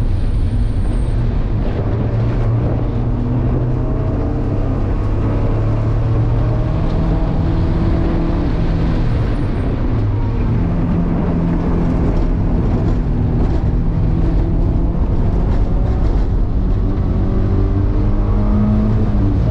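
Wind rushes and rumbles against the car.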